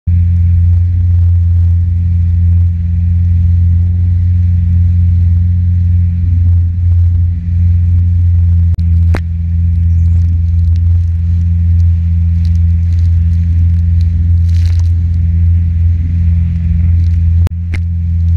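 A jet ski engine drones steadily and loudly up close.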